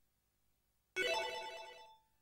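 A video game sound bursts out loudly and fades.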